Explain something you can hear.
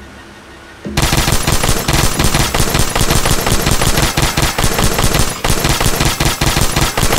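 A weapon fires in a loud, rapid, continuous stream.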